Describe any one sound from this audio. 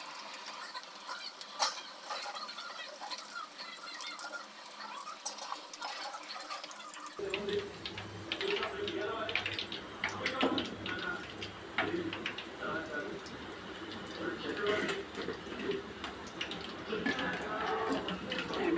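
Battered pieces sizzle and crackle in hot oil.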